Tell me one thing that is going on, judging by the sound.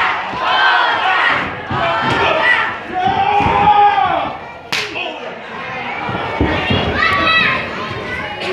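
A crowd in a large echoing hall shouts and cheers loudly.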